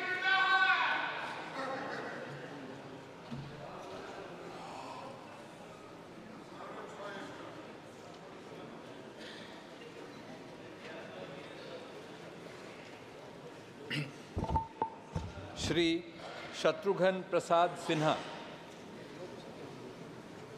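A crowd of men and women murmurs softly in a large hall.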